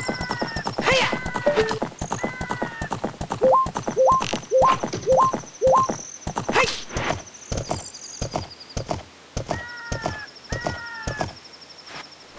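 A horse gallops with quick, rhythmic hoofbeats.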